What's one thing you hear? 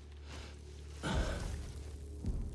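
A heavy body lands on the ground with a thud.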